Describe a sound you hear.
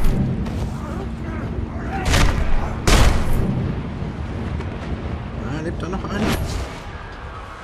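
Heavy punches land with dull thuds.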